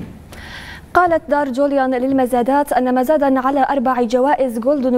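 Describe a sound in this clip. A young woman speaks clearly and evenly into a microphone.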